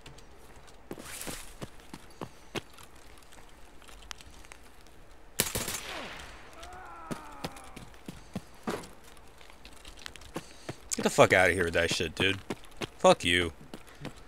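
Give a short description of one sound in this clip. Footsteps crunch on gravel and debris.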